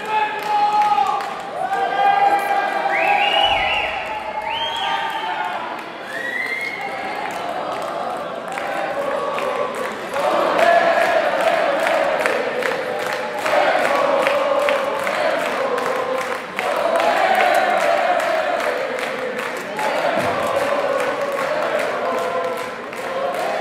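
A live rock band plays loudly through a loudspeaker system in a large hall.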